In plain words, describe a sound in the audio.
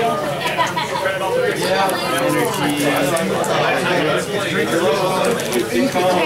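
Playing cards riffle and slap softly as they are shuffled by hand.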